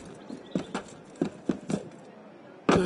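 Quick footsteps patter on a rooftop.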